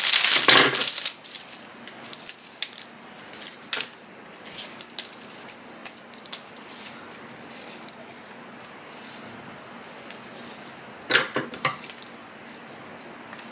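Flower stems rustle softly as they are handled.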